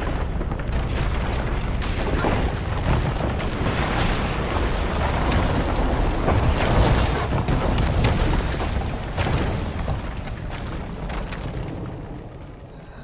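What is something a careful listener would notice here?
Rock and debris crumble and crash with a deep, heavy rumble.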